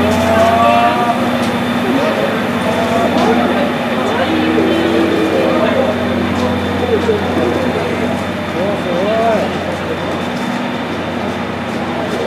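A steam locomotive hisses steam steadily.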